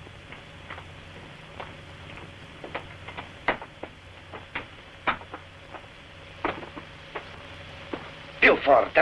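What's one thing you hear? Footsteps tap slowly on a stone floor.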